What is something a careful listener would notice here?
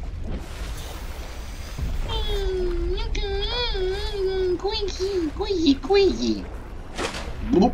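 Waves lap and splash at the surface of open water.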